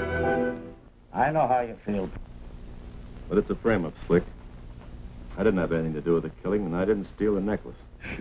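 A man speaks drowsily while lying down.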